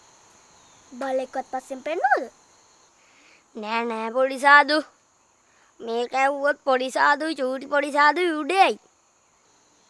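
A young boy speaks with animation, close by.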